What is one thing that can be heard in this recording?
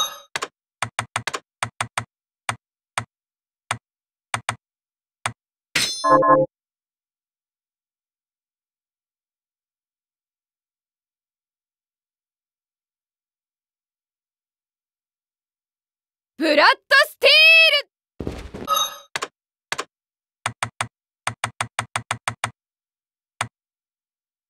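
Short menu blips tick quickly, one after another.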